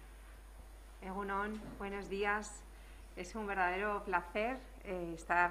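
A woman speaks calmly into a microphone in a room.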